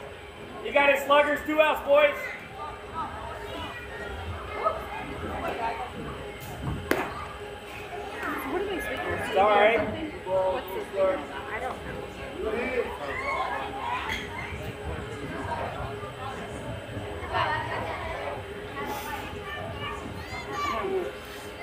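Young women shout and cheer outdoors.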